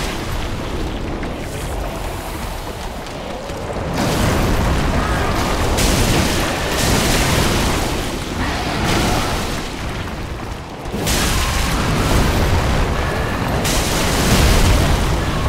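A huge beast growls and roars loudly.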